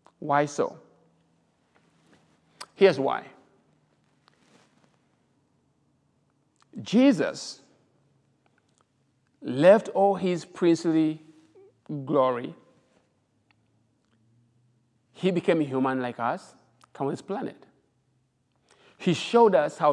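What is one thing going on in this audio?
A middle-aged man speaks calmly and earnestly into a nearby microphone, with pauses between phrases.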